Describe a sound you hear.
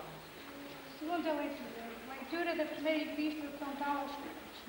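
A woman reads aloud at a lectern, her voice echoing in a large hall.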